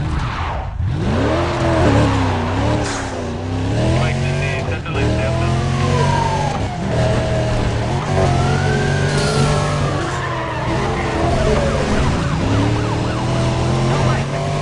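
A powerful car engine roars and revs up and down.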